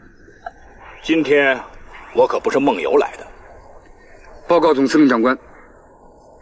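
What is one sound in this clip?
A young man speaks firmly and clearly, close by.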